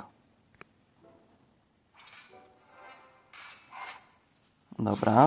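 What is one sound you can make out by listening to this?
Game chimes and whooshes sound as gems burst.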